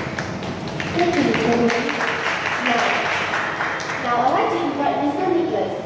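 A woman speaks through a loudspeaker in an echoing room.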